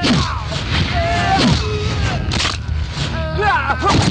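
A man cries out loudly in pain.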